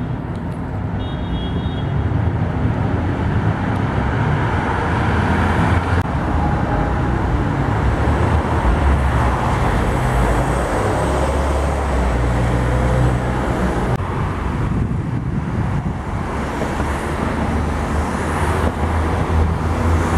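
City traffic rumbles steadily nearby.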